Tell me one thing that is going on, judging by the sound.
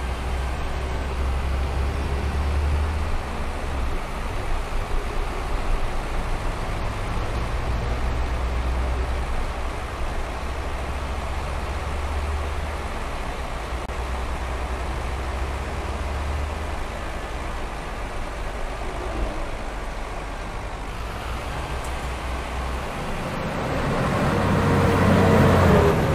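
A bus engine hums steadily and low as the bus drives along.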